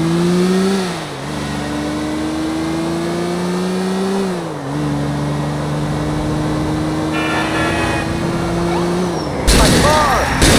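A car engine revs hard and shifts up through the gears.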